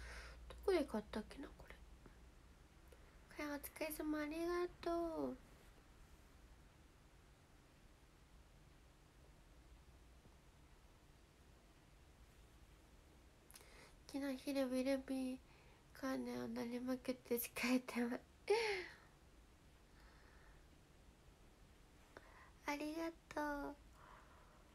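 A young woman speaks softly and playfully, close to a microphone.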